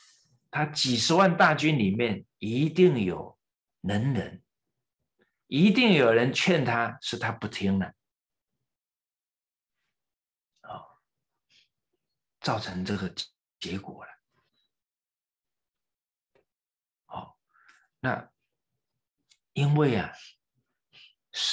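A middle-aged man speaks calmly and earnestly into a microphone, pausing often.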